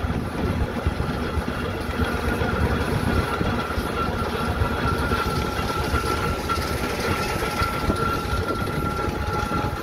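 A steam engine rumbles and hisses close by.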